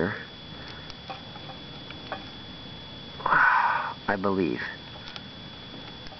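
Stiff wires click and scrape softly as they are bent by hand.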